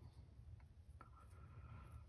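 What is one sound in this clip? Plastic netting crinkles between fingers.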